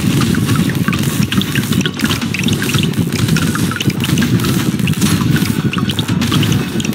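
Rapid gunfire and small pops ring out continuously.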